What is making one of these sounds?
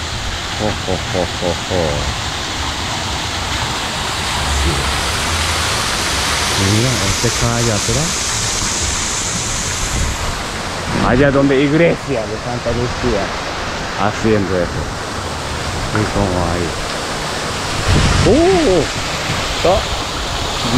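Water splashes steadily in a fountain.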